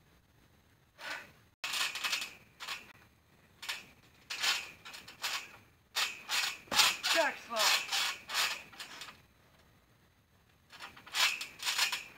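A trampoline mat creaks and thumps as a person jumps and tumbles on it.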